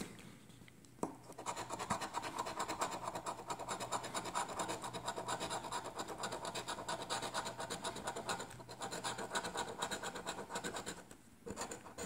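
A coin scratches rapidly across a card.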